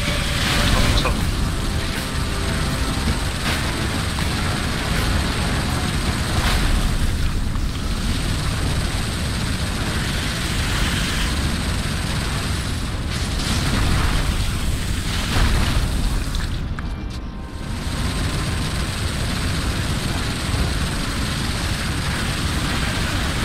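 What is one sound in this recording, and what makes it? A vehicle engine rumbles low and steady.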